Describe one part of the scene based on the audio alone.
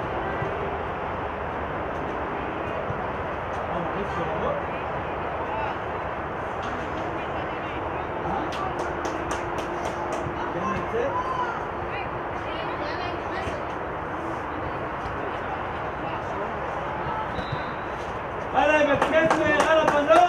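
A crowd chatters and calls out steadily across an outdoor field.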